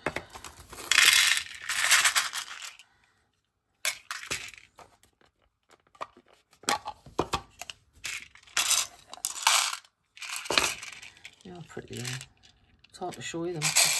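Small plastic gems rattle and clatter in a plastic tray.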